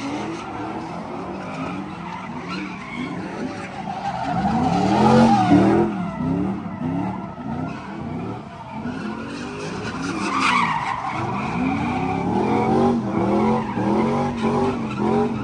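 Car engines rev loudly, rising and falling again and again.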